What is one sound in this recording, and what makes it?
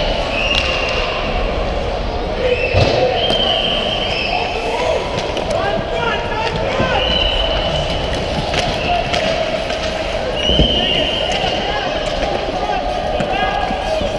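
Ice skates scrape and hiss across the ice in a large echoing arena.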